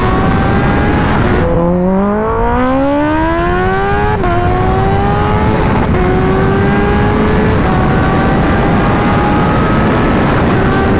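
A motorcycle engine roars at high speed, its pitch climbing as it accelerates through the gears.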